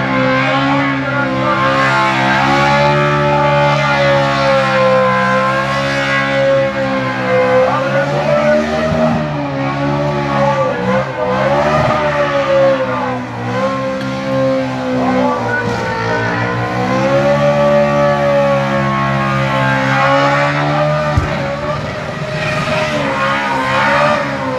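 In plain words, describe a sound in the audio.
A car engine roars loudly at high revs in the distance.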